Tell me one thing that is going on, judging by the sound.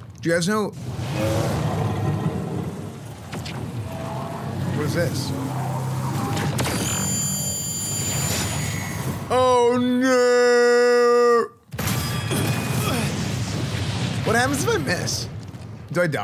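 A young man talks with excitement close to a microphone.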